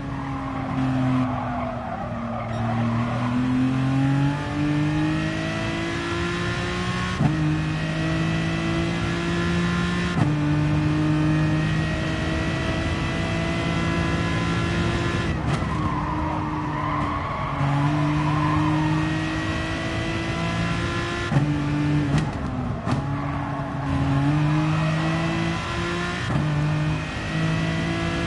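Tyres squeal as a car corners hard.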